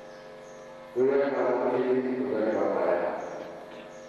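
A man speaks loudly through a microphone and loudspeakers.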